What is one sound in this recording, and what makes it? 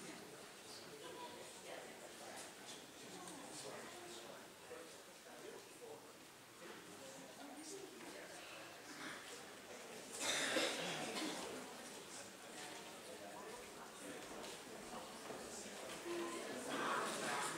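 A man speaks at a distance through a microphone in an echoing hall.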